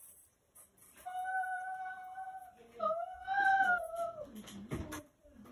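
A young child calls out with a high voice.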